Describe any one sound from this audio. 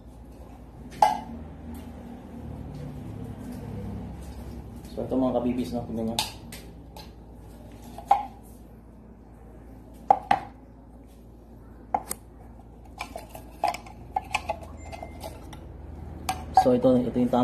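Metal cans clink and knock against each other.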